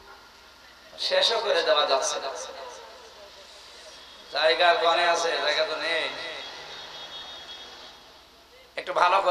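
A man chants and preaches with passion into a microphone, heard through loudspeakers with echo.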